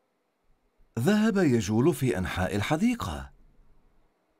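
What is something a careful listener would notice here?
A man speaks in a lively, sing-song voice.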